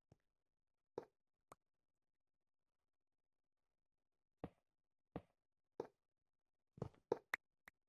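A video game block breaks under a pickaxe with a crunch.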